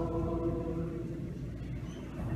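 A man chants in a slow, steady tone in a large echoing hall.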